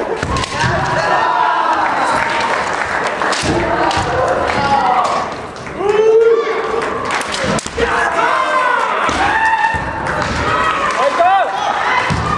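Kendo fighters shout loudly in a large echoing hall.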